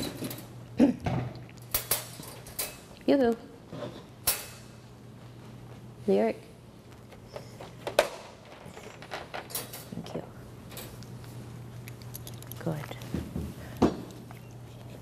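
A woman speaks softly and calmly nearby.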